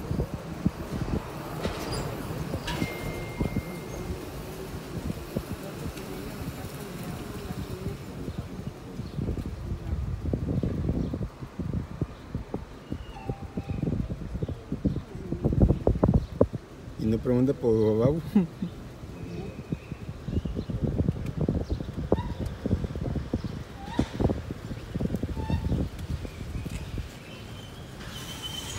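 Tyres roll over a rough street.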